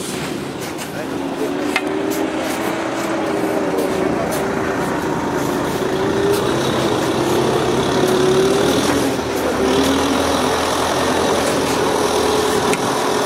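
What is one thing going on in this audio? An engine runs steadily nearby.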